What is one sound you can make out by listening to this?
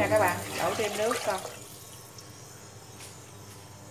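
Food is tipped from a bowl into a pot of liquid.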